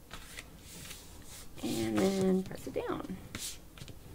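Hands press and smooth folded card on a table.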